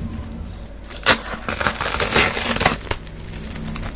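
A knife slices through plastic wrap.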